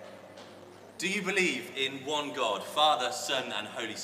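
A man speaks with animation into a microphone, in an echoing hall.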